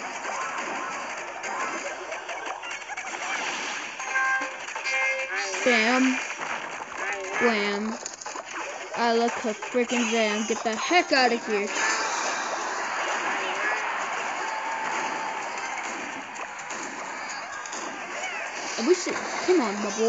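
Cartoonish battle sound effects clash and crackle throughout.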